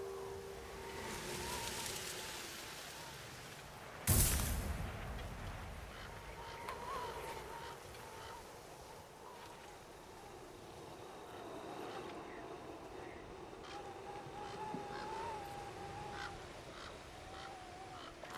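Wind blows steadily outdoors through falling snow.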